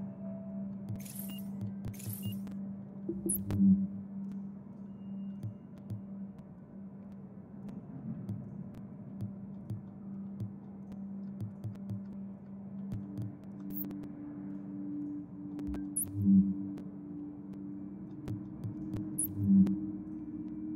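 Game menu sounds click and swish as the selection changes.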